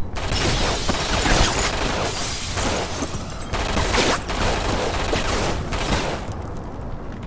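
A machine gun fires rapid, loud bursts.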